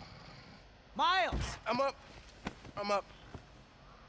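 A young man speaks groggily.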